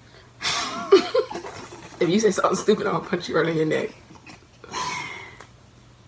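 Young women laugh together close by.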